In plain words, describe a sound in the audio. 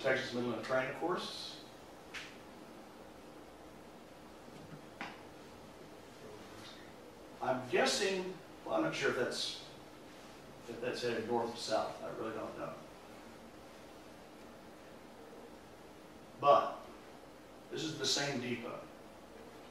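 An elderly man speaks calmly through a microphone, with pauses, in a room with a slight echo.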